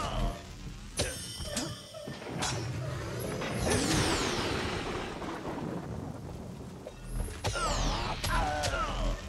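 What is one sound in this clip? Metal weapons clash and clang in a fight.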